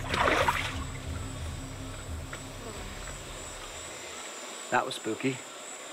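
A shallow river flows gently nearby.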